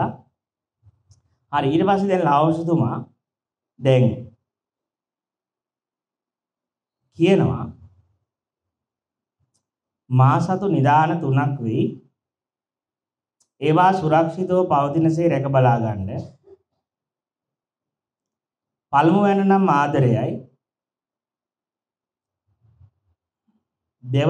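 A man reads aloud calmly into a microphone, in short phrases with pauses.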